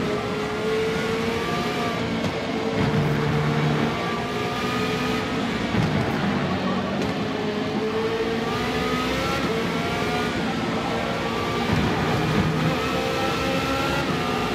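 A racing car engine roars steadily at high speed, its pitch rising and falling with the gear changes.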